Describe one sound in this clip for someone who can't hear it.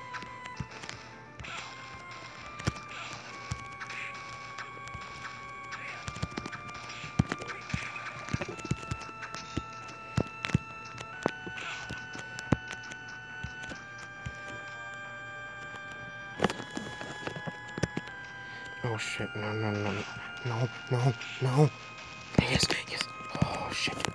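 Video game music plays with steady held notes.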